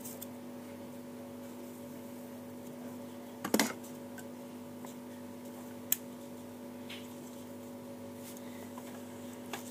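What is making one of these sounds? A refrigerated drinks cooler hums steadily.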